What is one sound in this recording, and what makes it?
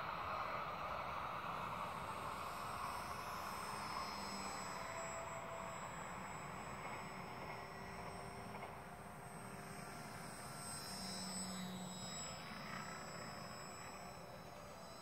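A drone whines steadily overhead, its pitch shifting now and then.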